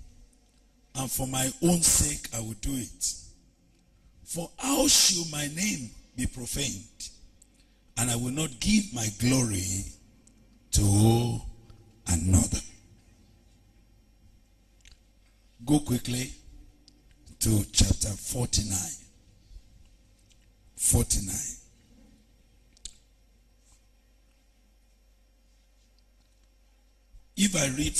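A man speaks with feeling into a microphone, in bursts with pauses.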